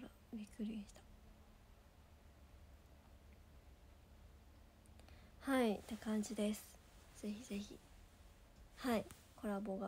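A young woman speaks calmly and softly, close by, with pauses.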